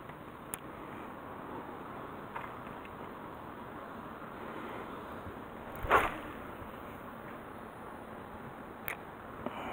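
A fishing reel whirs softly as line is wound in.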